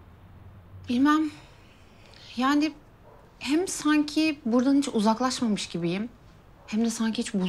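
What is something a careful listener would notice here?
Another young woman answers quietly nearby.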